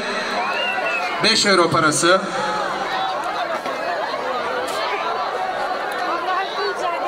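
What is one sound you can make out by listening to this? A crowd chatters and talks outdoors in the background.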